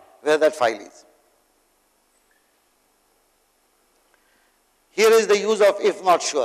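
An elderly man speaks calmly into a clip-on microphone, pausing between phrases.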